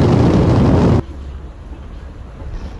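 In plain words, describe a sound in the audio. A river flows nearby.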